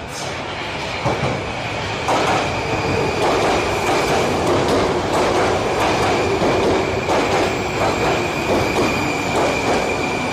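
Train brakes squeal with a steady high whine.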